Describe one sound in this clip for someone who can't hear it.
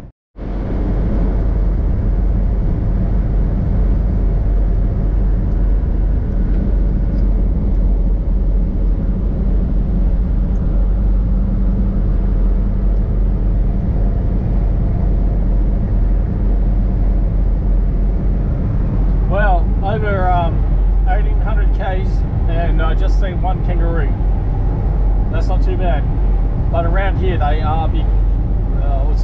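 A vehicle's engine drones steadily as it drives over a rough dirt road.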